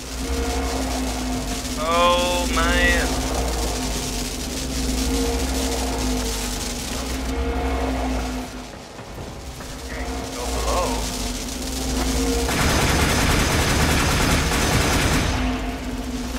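An electric beam crackles and hisses loudly.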